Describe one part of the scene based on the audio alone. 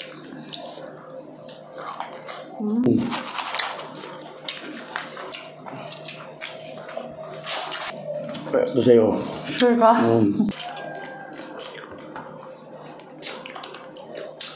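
Crispy food crunches and crackles close up.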